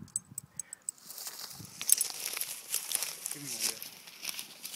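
Dry brush rustles and crackles as a man walks through it.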